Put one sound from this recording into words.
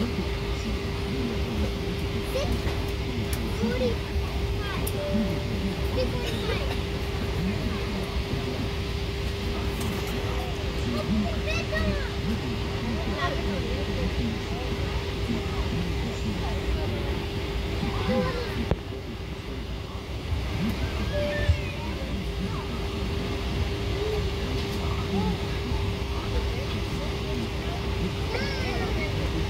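A steady low drone of a plane's engines fills the cabin.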